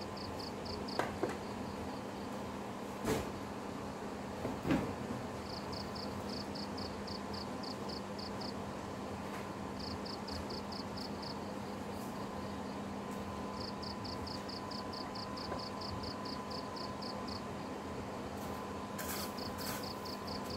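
Light knocks of food and fingers against a plate come now and then.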